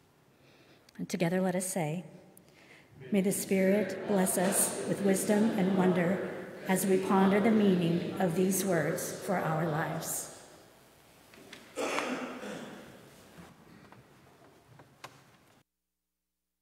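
A middle-aged woman speaks calmly into a microphone in an echoing hall.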